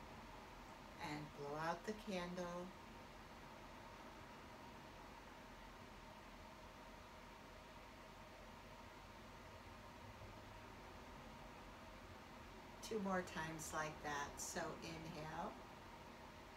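An older woman speaks calmly and softly, close by.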